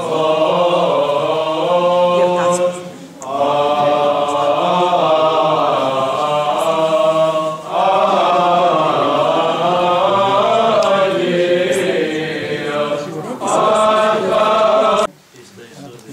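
A group of voices chants a slow hymn loudly, with echo.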